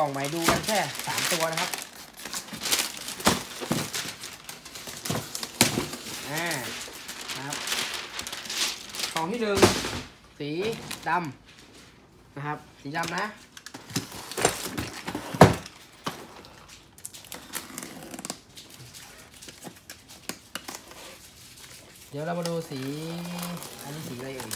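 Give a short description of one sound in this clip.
Styrofoam packaging squeaks and rubs as it is handled.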